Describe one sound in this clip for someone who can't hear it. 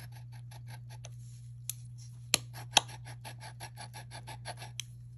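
Fingers rub rapidly over a metal bracelet with a soft scratchy swish.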